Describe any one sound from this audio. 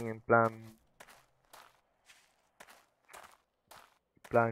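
Footsteps crunch on loose rubble.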